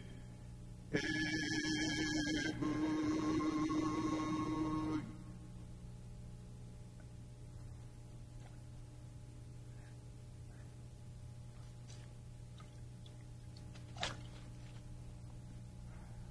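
Water splashes softly from cupped hands.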